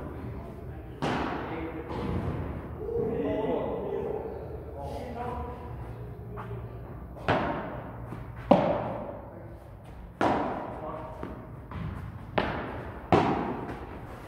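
Paddles strike a ball with sharp pops that echo around a large hall.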